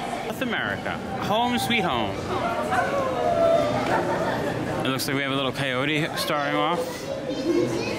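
A crowd of young people chatters nearby in a large echoing hall.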